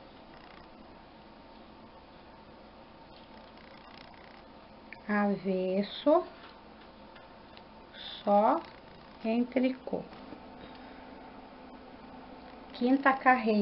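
Plastic knitting needles click softly against each other.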